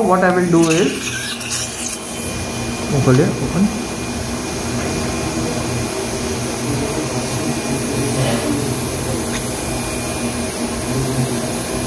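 Metal dental instruments click softly against teeth.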